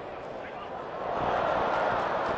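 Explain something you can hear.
A stadium crowd roars louder as an attack builds.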